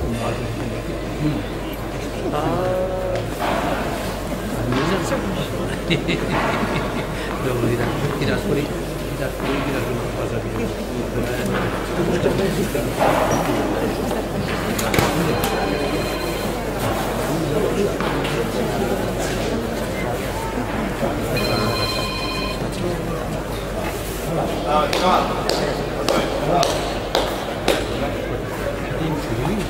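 Adult men and women chat at a distance.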